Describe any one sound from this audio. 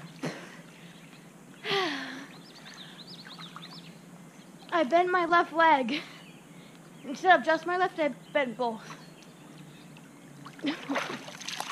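Water splashes as a girl swims.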